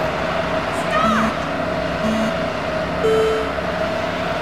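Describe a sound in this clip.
Countdown beeps sound, ending on a higher beep.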